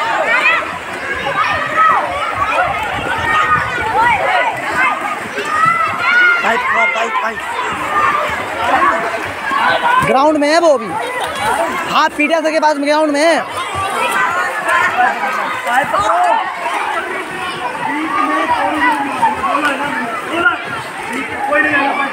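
Many children shout and call out excitedly nearby, outdoors.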